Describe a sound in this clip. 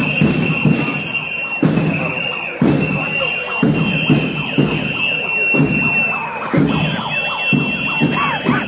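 A large crowd of men and women chants loudly in rhythm outdoors.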